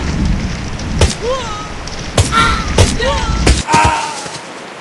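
A bicycle crashes to the ground with loud thuds.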